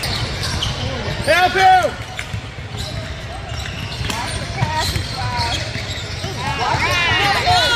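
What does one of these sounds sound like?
Players and spectators call out and chatter in the background.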